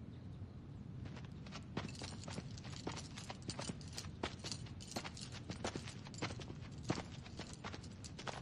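A bunch of metal keys jingles.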